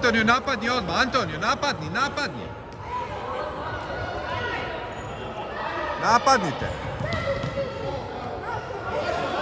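Children shout and call out in an echoing sports hall.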